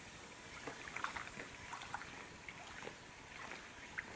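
Water splashes as a person scoops it with the hands.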